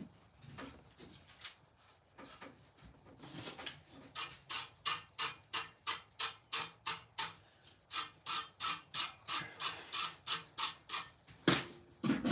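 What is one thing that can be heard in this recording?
A man strikes metal objects with a rod in a fast, ringing rhythm.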